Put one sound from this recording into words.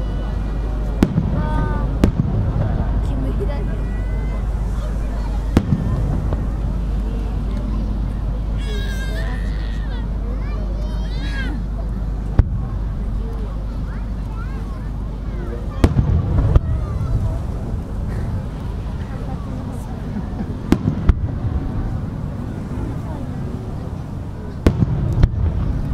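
Fireworks burst with sharp booms that echo far off.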